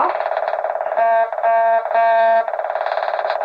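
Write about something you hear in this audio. A toy motorbike plays a beeping electronic tune.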